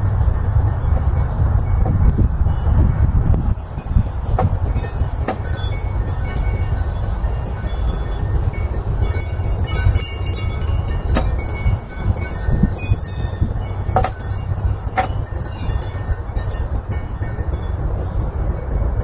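Hanging decorations rustle and flap in the wind.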